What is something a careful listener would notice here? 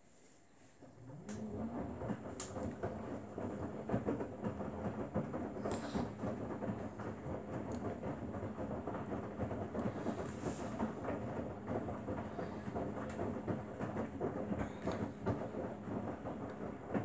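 Wet laundry tumbles and sloshes inside a washing machine drum.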